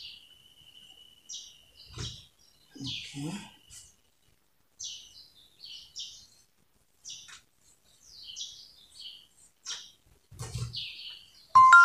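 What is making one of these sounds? Cloth rustles softly as it is folded and smoothed by hand.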